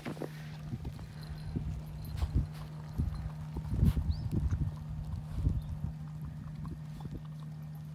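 A dog sniffs at the snow.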